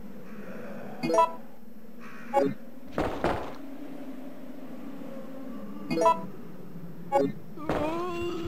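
Short electronic beeps sound as menu choices are made.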